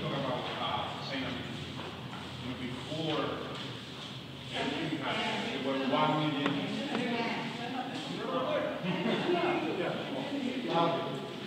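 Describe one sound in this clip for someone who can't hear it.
Several adults talk and murmur at once in a large echoing room.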